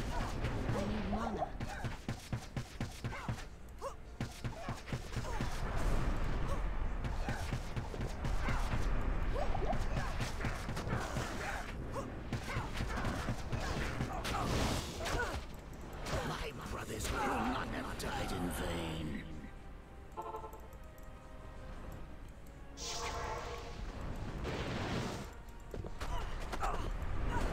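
Fiery spells whoosh and burst in quick succession.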